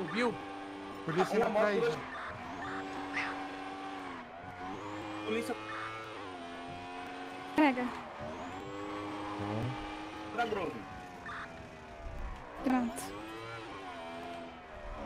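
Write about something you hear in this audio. A motorcycle engine revs and whines as gears shift.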